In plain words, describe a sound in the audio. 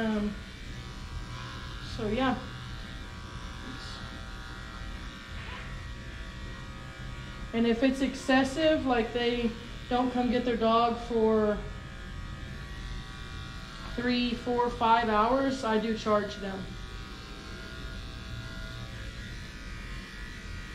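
Electric clippers buzz steadily.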